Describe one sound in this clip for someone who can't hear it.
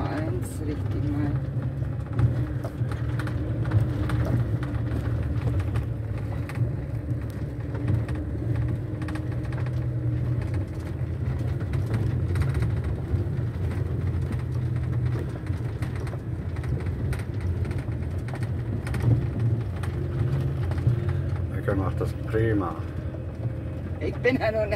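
A van's engine hums from inside the cab as it drives along a track.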